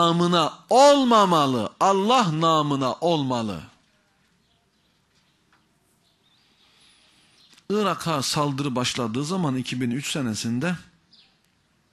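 A middle-aged man speaks with animation into a microphone, with long pauses.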